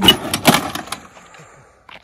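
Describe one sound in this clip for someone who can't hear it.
A motorcycle crashes and scrapes across a road.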